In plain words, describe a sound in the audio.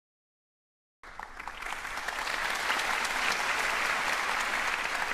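An audience applauds in a large hall, the clapping swelling and then holding steady.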